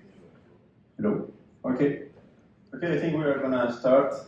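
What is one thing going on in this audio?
A young man speaks calmly into a microphone, heard through loudspeakers in a room.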